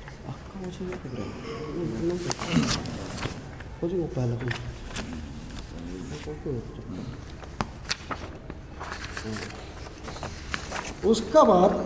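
Paper rustles as pages are turned and handled.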